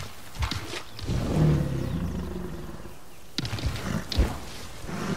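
A large creature's wings flap heavily.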